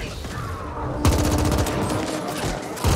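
An explosion bursts loudly and crackles.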